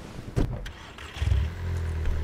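A car engine starts and hums low.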